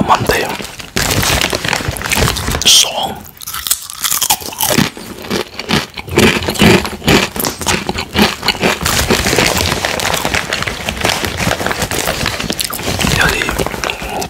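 A plastic snack bag crinkles and rustles.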